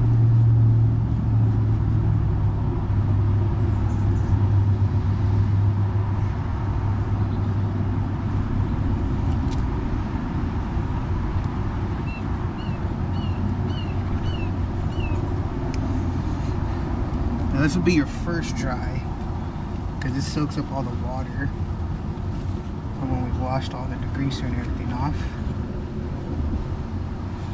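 A wet towel scrubs over a tyre.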